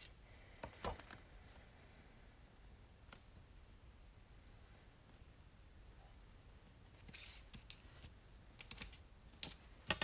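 A ruler taps and scrapes on a paper sheet.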